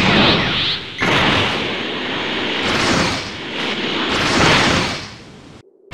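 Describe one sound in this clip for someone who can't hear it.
Energy blasts whoosh and roar past.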